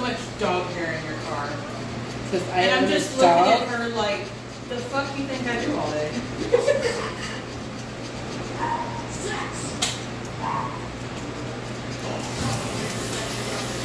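Scissors snip through fur.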